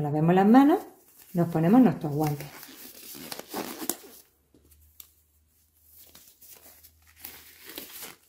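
Rubber gloves rustle and snap as they are pulled onto hands.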